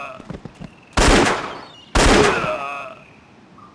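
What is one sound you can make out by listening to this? Two loud gunshots ring out.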